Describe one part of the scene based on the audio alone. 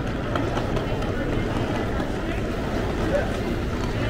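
Suitcase wheels roll over a tiled floor.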